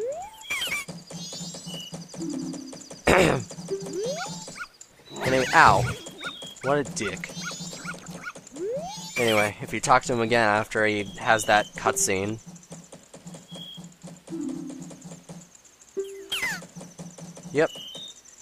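Soft electronic blips tick rapidly as game dialogue text scrolls.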